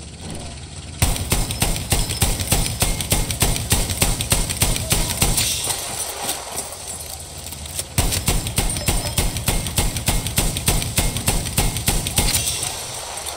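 A heavy machine gun fires in rapid, rattling bursts close by.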